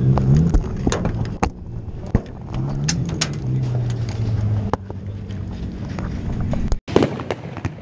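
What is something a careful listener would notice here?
A race car engine rumbles and revs.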